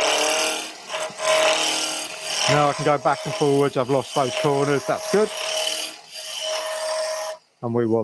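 A gouge scrapes and shaves against spinning wood.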